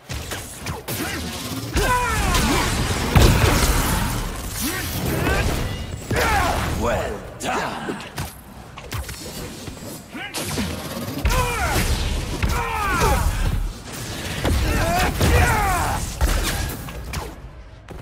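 Punches and kicks land with heavy thuds and whooshes.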